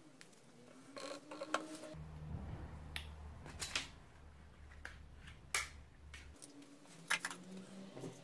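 Plastic objects knock and clatter on a table.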